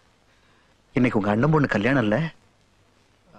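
A middle-aged man speaks calmly and firmly.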